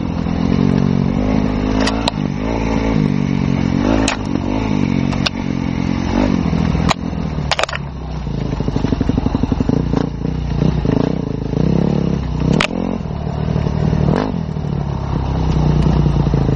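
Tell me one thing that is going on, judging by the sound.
A motorcycle engine revs and changes pitch up close.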